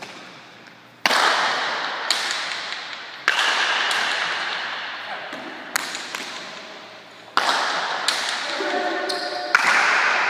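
A wooden bat strikes a ball with a sharp crack.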